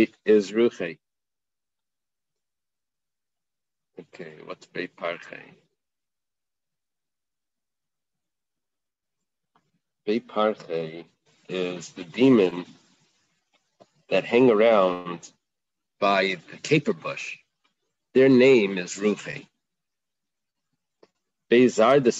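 A man speaks calmly in short phrases over an online call, with pauses between them.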